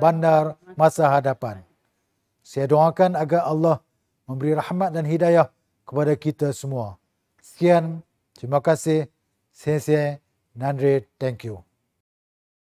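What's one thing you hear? A middle-aged man speaks calmly and formally into a close microphone.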